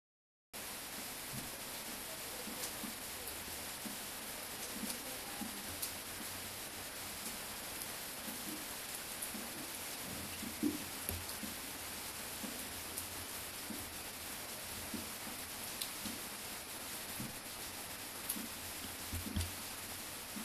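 Fingers handle and rub a small plastic part with soft, scattered taps and scrapes.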